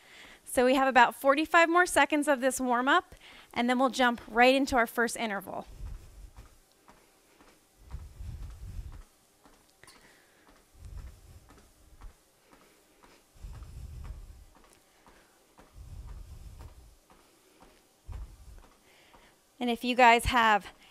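Footsteps thud on a treadmill belt.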